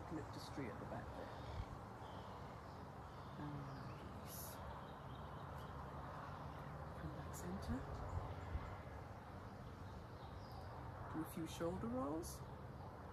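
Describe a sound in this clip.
An elderly woman speaks calmly and softly nearby.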